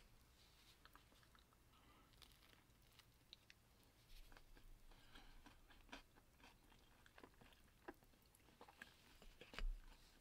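A crispy tortilla crackles as hands tear it apart.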